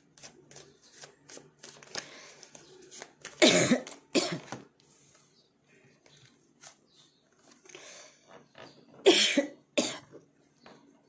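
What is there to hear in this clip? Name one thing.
Playing cards riffle and slap together as they are shuffled.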